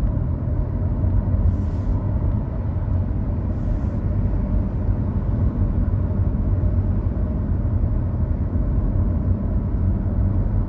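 A car engine hums steadily, heard from inside the car.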